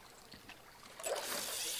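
A fishing line whooshes out as a rod is cast.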